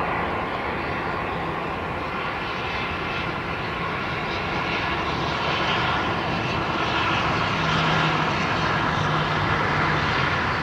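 A jet airliner's engines roar steadily overhead, slowly growing louder.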